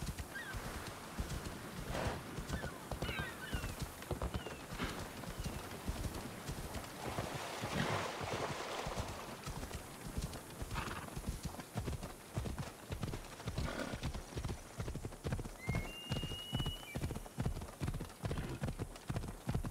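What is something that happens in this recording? Horse hooves thud steadily on dirt at a gallop.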